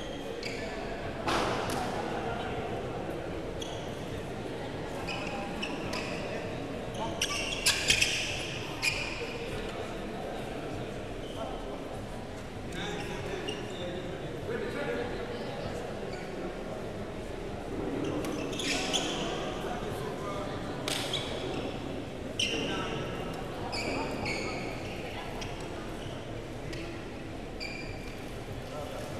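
A crowd murmurs in an echoing hall.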